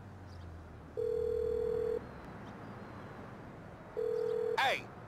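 A phone's ringback tone sounds in long, even beeps while a call is dialed.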